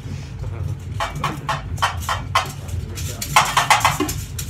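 Shakers rattle in a quick rhythm.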